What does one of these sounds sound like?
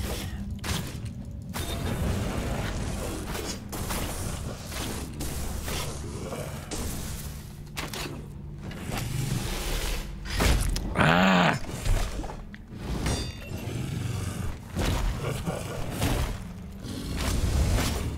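A heavy hammer slams into the ground again and again.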